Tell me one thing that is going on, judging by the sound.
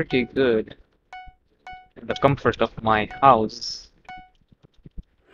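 Short electronic beeps count down at an even pace.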